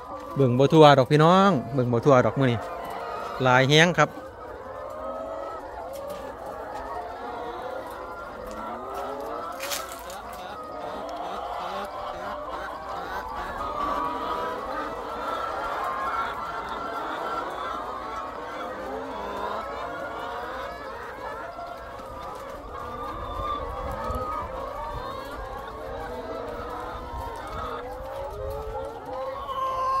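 Many hens cluck and chatter nearby.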